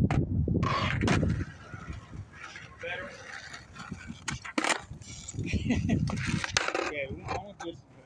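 Skateboard wheels roll over rough pavement outdoors.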